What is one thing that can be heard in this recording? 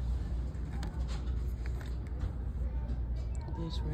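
A cardboard package rustles and clicks as it is pulled off a metal hook.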